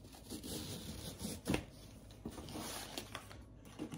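A ribbon rustles as it is untied.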